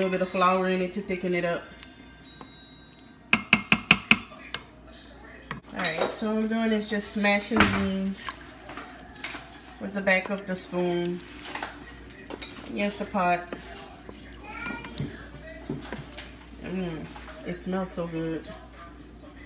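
A wooden spoon stirs a thick, bubbling stew in a metal pot.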